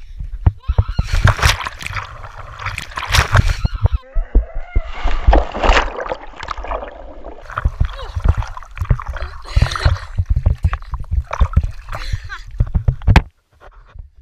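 A young boy gasps and shouts close by.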